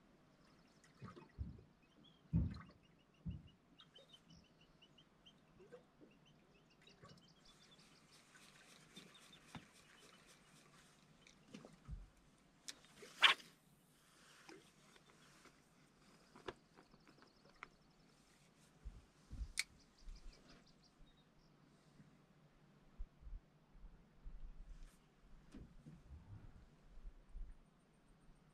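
Low knocks and bumps sound on a metal boat.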